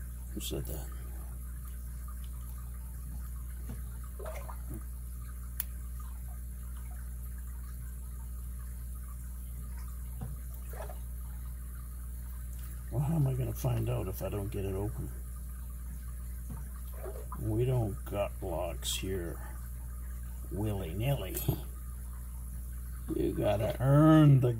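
Small metal tools click and scrape inside a padlock.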